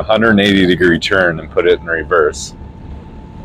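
A young man speaks calmly and close through a clip-on microphone.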